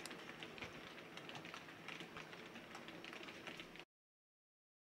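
A model train rumbles and clicks along the track.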